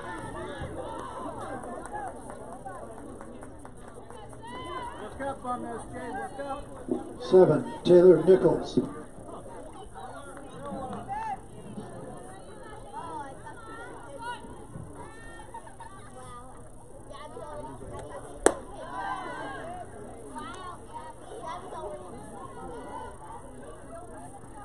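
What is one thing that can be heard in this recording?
Young women chatter and shout encouragement across an open field.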